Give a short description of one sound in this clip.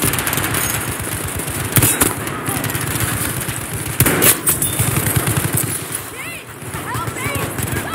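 Gunfire rattles in bursts nearby.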